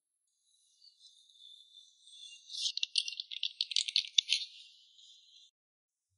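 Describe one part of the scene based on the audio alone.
Fingers tap on a keyboard.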